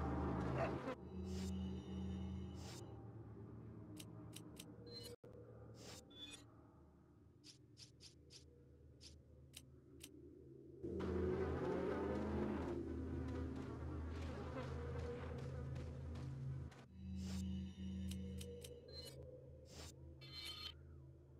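Short electronic menu beeps sound one after another.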